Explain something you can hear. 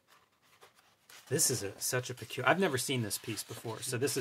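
A page of a book is turned with a papery rustle.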